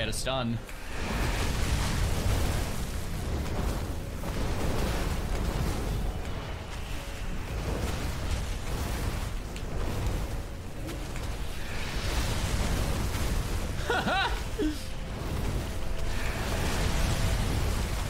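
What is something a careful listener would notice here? Game spell effects crackle and whoosh in quick bursts.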